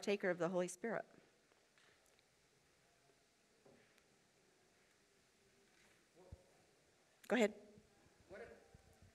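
A woman speaks calmly through a microphone in a large echoing hall, with long pauses.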